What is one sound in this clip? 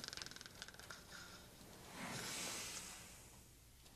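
A blanket rustles.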